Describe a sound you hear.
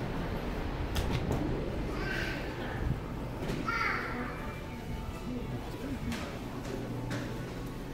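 People murmur and talk quietly in a large indoor hall.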